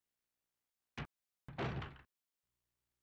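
A door shuts with a heavy thud.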